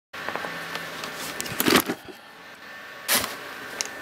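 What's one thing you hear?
Plastic wrap rustles and crinkles.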